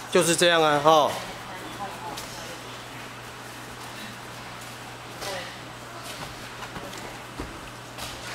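Bare feet shuffle on padded mats.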